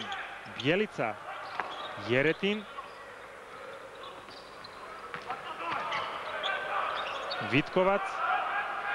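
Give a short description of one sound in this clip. A crowd murmurs and cheers throughout a large echoing arena.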